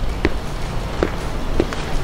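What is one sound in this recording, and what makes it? A ball thuds once on hard dirt outdoors.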